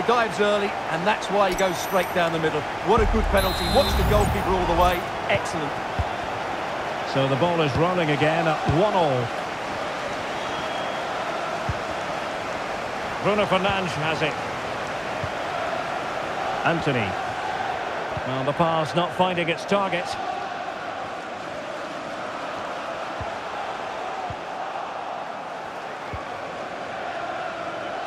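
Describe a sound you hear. A large stadium crowd roars and murmurs steadily throughout.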